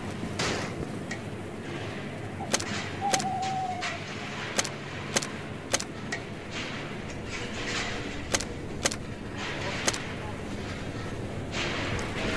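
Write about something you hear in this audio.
Soft clicks tick as items are selected.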